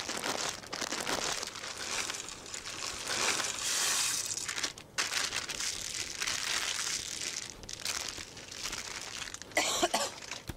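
Dry pasta rattles and rustles as it pours from a crinkly plastic bag into a pot.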